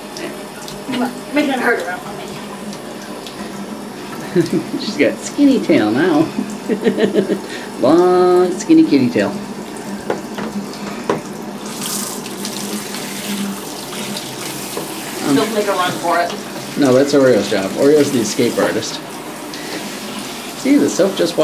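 A wet cat meows loudly.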